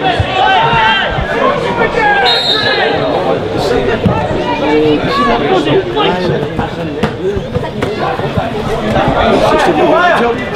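A crowd of spectators chatters and shouts nearby outdoors.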